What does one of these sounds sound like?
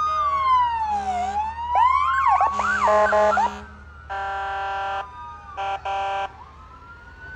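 A vehicle air horn blasts in loud bursts.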